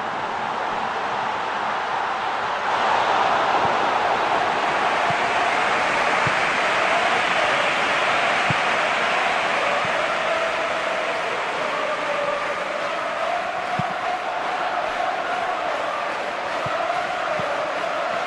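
A large stadium crowd roars steadily throughout.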